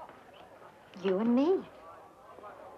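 A woman speaks softly.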